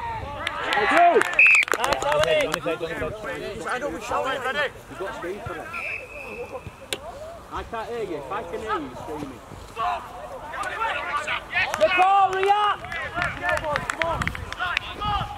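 Young men shout and call out to each other on an open field.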